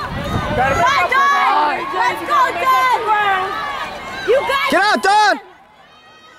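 A crowd of spectators cheers and shouts loudly nearby.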